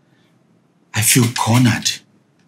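A second man speaks, pleading, close by.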